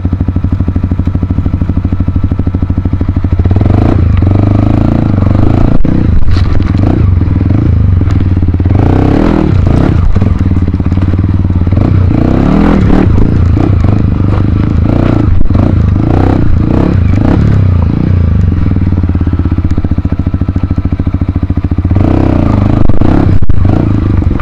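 A dirt bike engine idles and revs close by.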